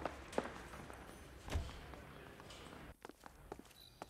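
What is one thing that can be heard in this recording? A heavy door opens.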